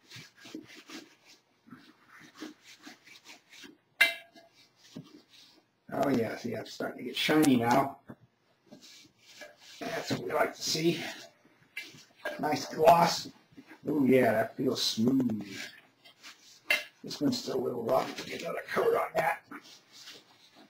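A cloth rubs against a plaster mould.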